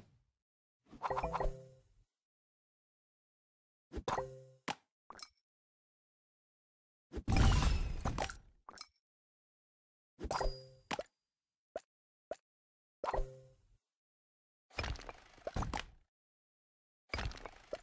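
Electronic game pieces pop and chime in short bursts.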